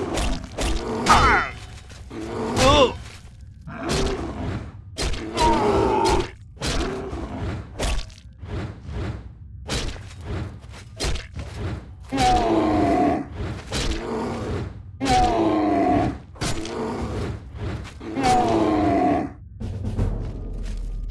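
A heavy mace strikes a creature with dull thuds.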